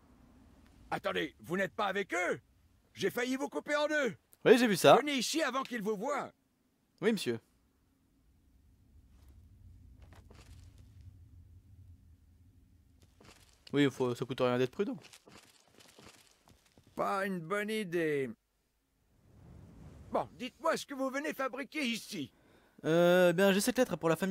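A middle-aged man speaks firmly, close up.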